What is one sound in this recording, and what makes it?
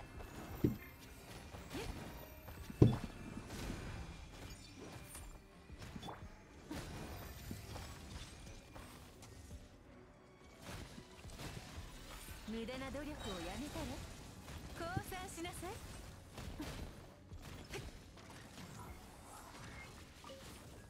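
Game combat effects crash and whoosh as blows land.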